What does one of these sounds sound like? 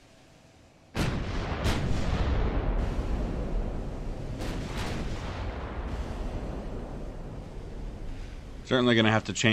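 Heavy gunfire and shell explosions boom and rumble loudly.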